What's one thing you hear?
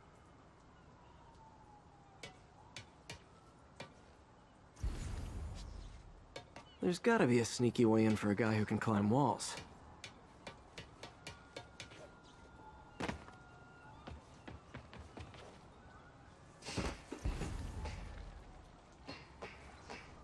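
Footsteps tap lightly on a metal roof.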